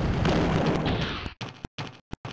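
A heavy explosion rumbles and fades.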